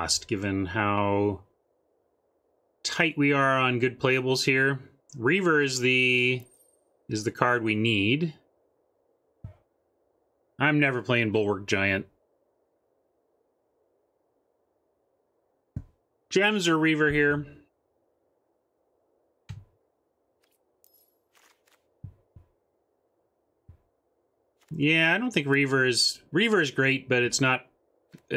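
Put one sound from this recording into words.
A man talks with animation into a close microphone, in bursts with pauses.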